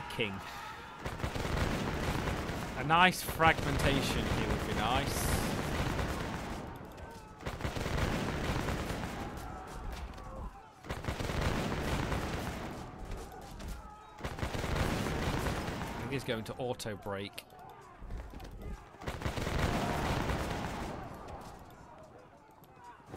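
Musket volleys crackle and rumble in a battle.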